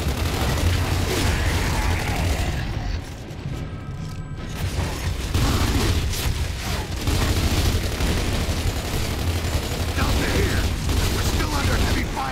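Rapid gunfire rattles and cracks.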